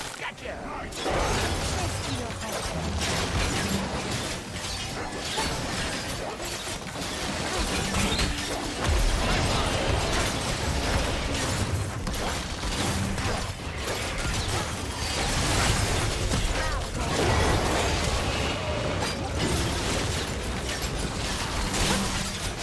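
Spell blasts whoosh and crackle in a busy fight.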